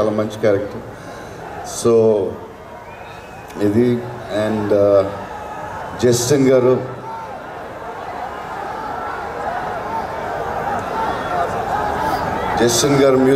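A man speaks loudly through a microphone and loudspeakers, in short bursts.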